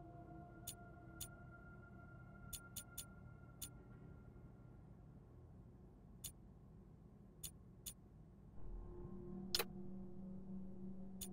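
Short interface clicks tick as a game menu selection moves.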